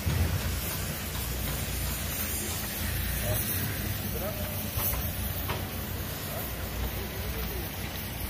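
A heavy diesel engine idles with a low rumble.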